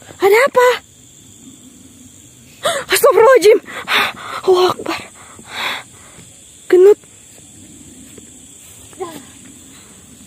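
A young woman shrieks and wails eerily, close by.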